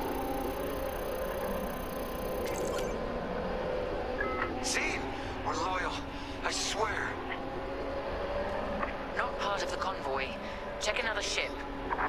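A starfighter's engine hums steadily.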